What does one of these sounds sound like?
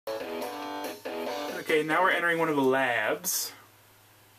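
Video game music plays through a television speaker.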